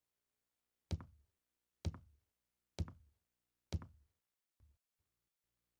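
Footsteps thud slowly up wooden stairs.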